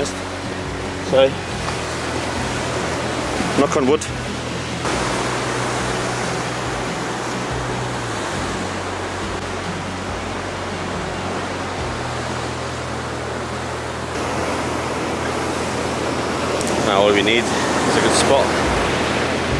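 A young man talks calmly close by, outdoors in wind.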